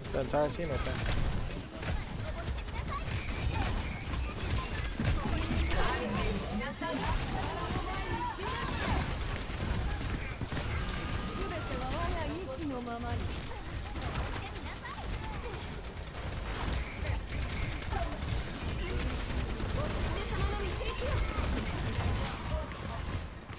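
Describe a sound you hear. Game guns fire in rapid bursts.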